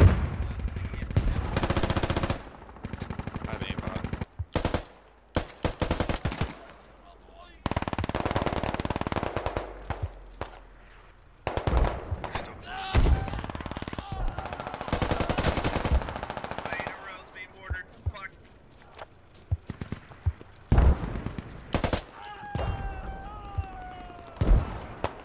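Rapid gunfire rattles in short, loud bursts.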